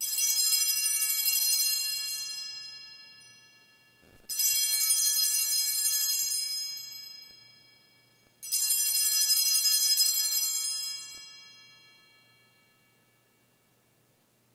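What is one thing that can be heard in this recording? A small bell rings three times, each ring slowly fading.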